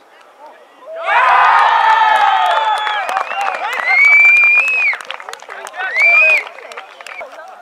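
A small crowd cheers and yells loudly.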